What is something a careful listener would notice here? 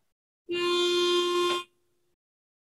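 A pitch pipe sounds a steady note.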